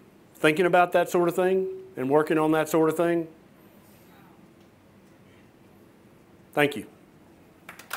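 A middle-aged man speaks calmly and clearly.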